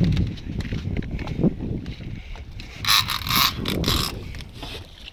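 Water laps against a small boat's hull.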